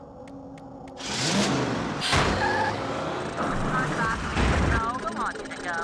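A game's magic blast zaps and whooshes loudly.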